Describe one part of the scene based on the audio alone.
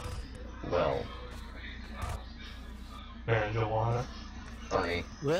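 A young man talks with animation into a headset microphone, in short bursts.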